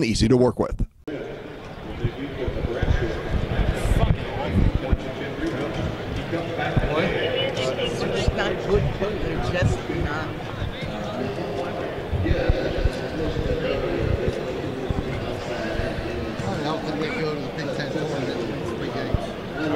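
A man speaks calmly into a microphone in a large echoing arena.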